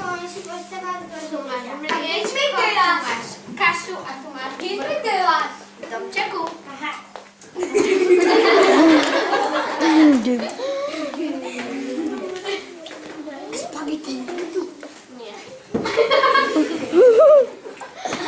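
A girl talks with animation to children nearby.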